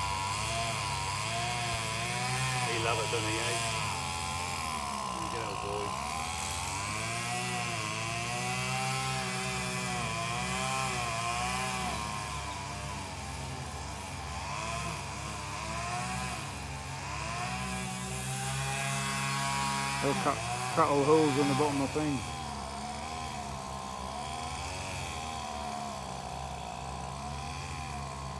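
Many bees buzz loudly close by, their hum rising and falling.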